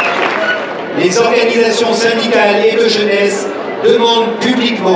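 A man speaks loudly through a microphone and loudspeaker outdoors.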